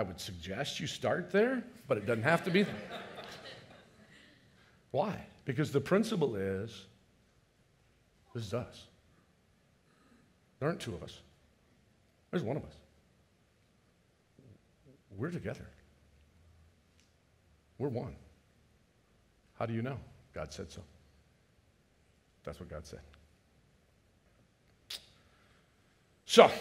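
An older man speaks with animation into a headset microphone, in short bursts with pauses.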